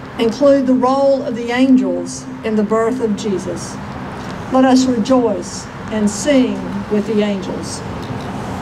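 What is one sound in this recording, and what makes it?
A middle-aged woman speaks calmly through a microphone outdoors.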